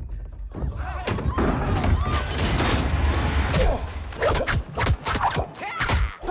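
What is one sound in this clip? Blows and thuds land in a fight.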